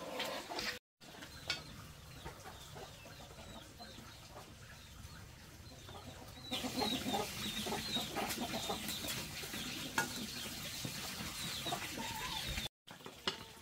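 A wooden spoon stirs and scrapes in a pot.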